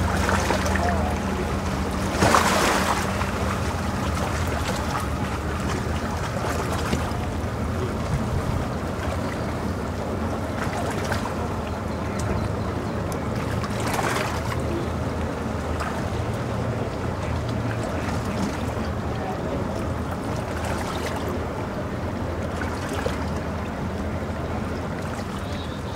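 A boat's outboard motor idles with a low, steady hum.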